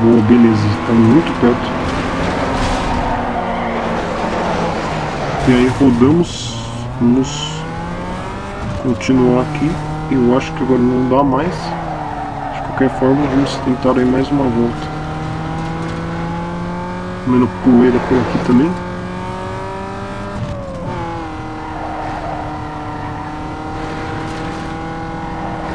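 A car engine roars and revs, rising and falling in pitch.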